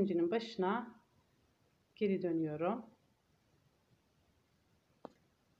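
A needle and thread pull softly through fabric.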